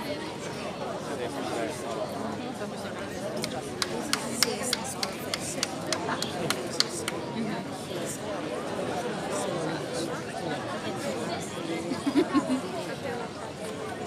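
A wind band plays a lively tune outdoors.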